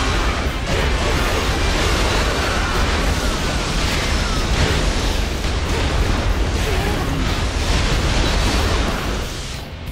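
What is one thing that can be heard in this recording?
Swords slash and strike repeatedly in a fast, noisy melee.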